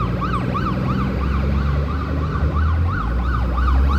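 A car engine hums as it drives past.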